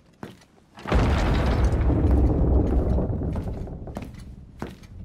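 Heavy doors swing open with a deep rumble.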